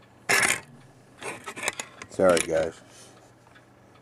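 Hands handle a circuit board with soft knocks and rustles close by.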